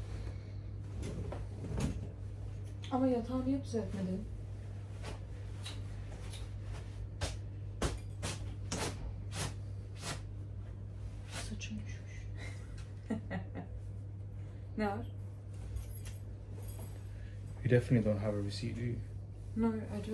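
Fabric of a coat rustles and swishes.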